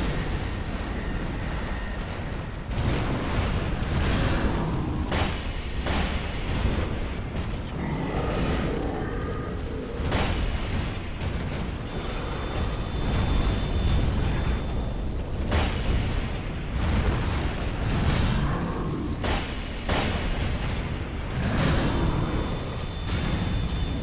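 Weapons clash and strike in a fight, with sharp impacts.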